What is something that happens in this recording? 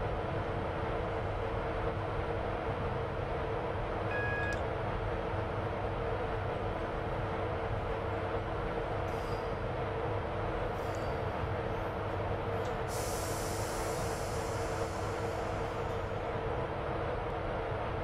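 A train engine hums steadily.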